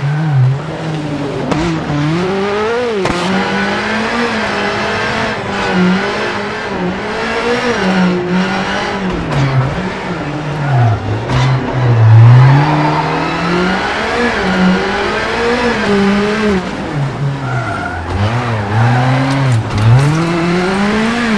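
A rally car engine revs hard, rising and falling as the car shifts gears.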